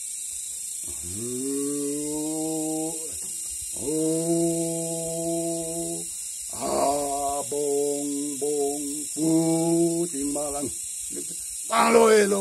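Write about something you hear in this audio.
An elderly man sings in a long, steady chant.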